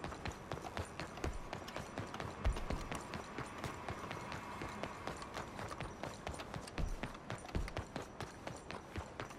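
Quick footsteps run over hard cobblestones.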